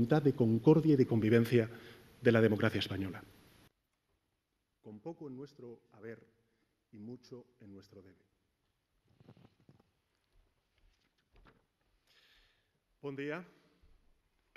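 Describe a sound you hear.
A man speaks steadily into a microphone in a large hall.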